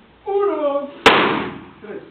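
A pistol fires a single loud shot in a small room.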